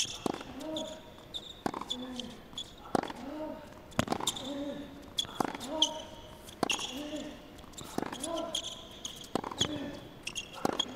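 Shoes squeak on a hard court.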